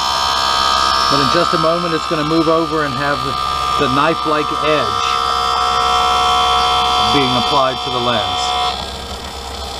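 A machine whirs and hums steadily, then stops.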